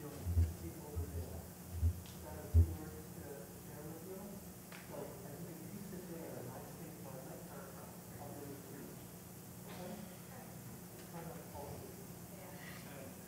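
A man recites a prayer in a low voice, heard faintly through a microphone in an echoing hall.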